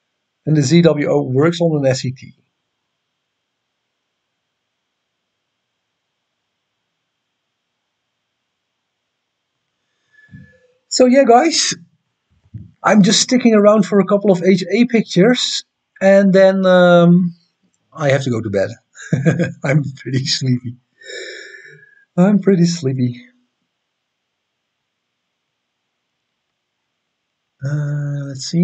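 A man talks casually into a close microphone, with pauses.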